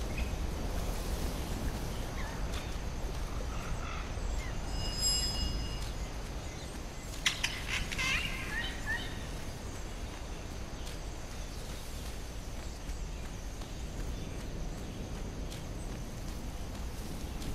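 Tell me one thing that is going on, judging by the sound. Footsteps patter quickly along a dirt path.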